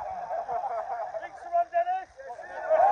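A man speaks loudly through a megaphone.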